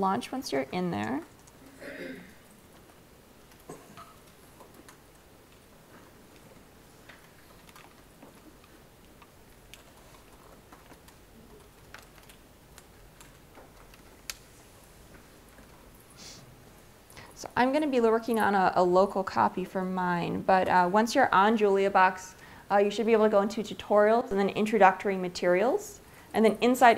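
A young woman speaks through a microphone, with long pauses.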